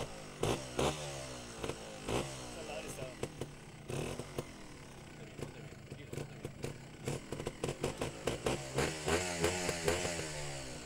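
A motorcycle engine idles and blips close by.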